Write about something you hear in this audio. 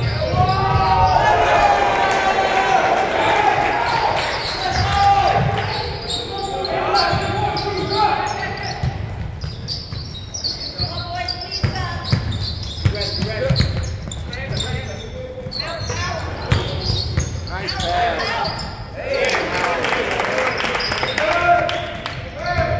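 Sneakers squeak on the wooden floor.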